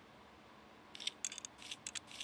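A small part clicks as it is pulled free.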